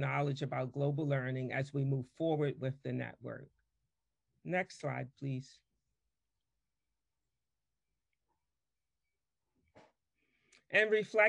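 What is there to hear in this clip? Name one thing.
A woman speaks calmly through a microphone in an online call, with pauses.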